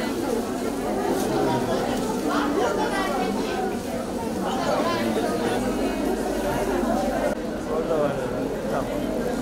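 A crowd of women chatter and talk over one another nearby.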